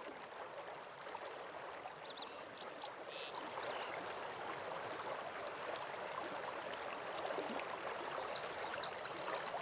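Water from a waterfall rushes steadily in the distance.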